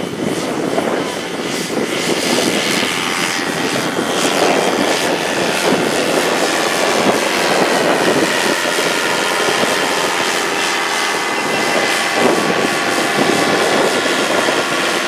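A paramotor engine buzzes steadily as it takes off and climbs away.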